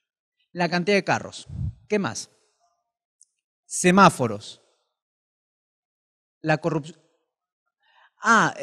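A man speaks with animation into a microphone, in short phrases with pauses.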